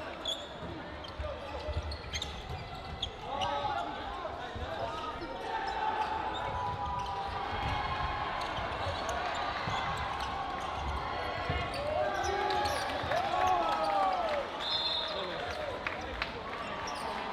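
A crowd of players and spectators chatters and shouts in a large echoing hall.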